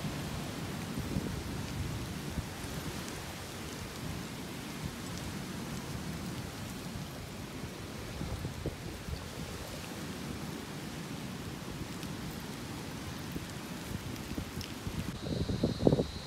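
Hermit crab shells clatter softly on stony ground.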